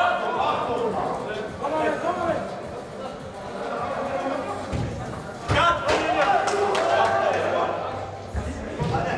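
Players shout and call out to each other in a large echoing hall.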